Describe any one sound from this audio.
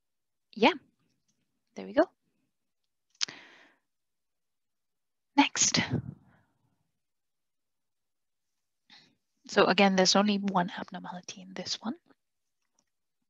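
A young woman speaks calmly over an online call, in short bursts.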